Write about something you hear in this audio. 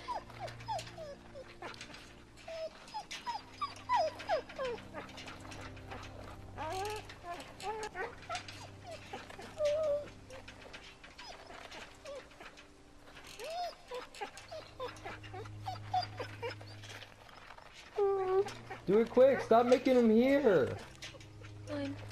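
A wounded dog whimpers and whines weakly.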